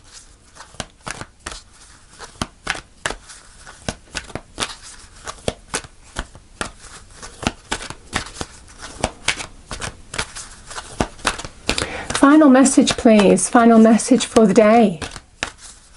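Playing cards are shuffled with quick, crisp clicks and riffles.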